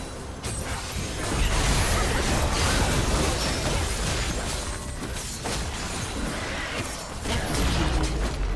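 Spell blasts and impacts crash and whoosh in a fast battle.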